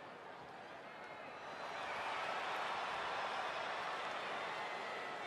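A large crowd cheers loudly in a big echoing arena, growing louder.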